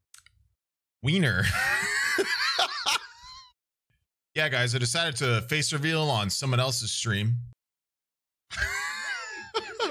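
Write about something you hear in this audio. A young man laughs loudly, close to a microphone.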